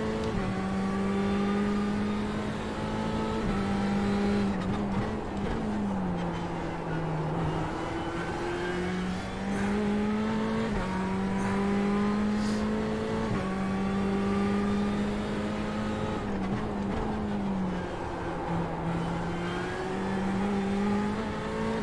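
A racing car engine roars steadily, rising in pitch and dropping with each gear change.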